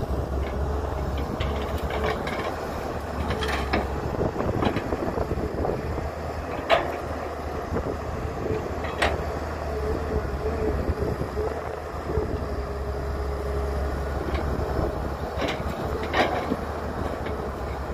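Dirt and clods pour and thud into a metal truck bed.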